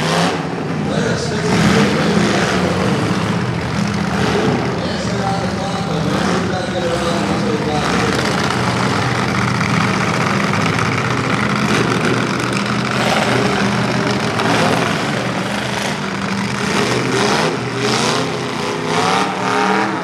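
Car engines roar and rev loudly outdoors.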